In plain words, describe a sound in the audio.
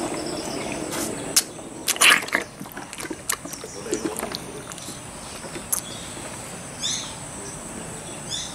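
A baby elephant sucks and slurps milk from a bottle.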